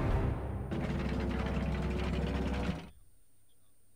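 A game's score counter ticks rapidly and then stops.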